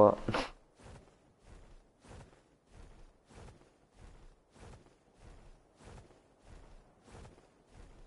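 Large wings flap in a steady, even rhythm.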